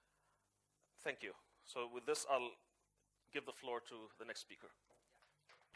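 A young man speaks clearly into a microphone.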